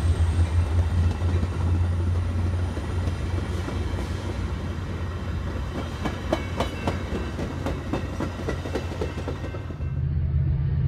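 A train rolls past with wheels clacking over rail joints.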